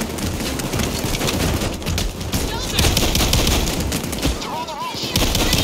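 Rapid gunfire rattles loudly and without pause.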